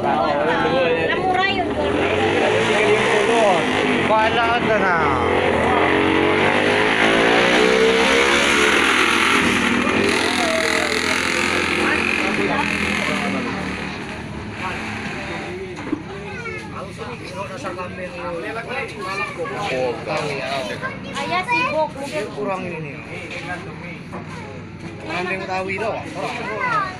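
A busy crowd of voices chatters nearby.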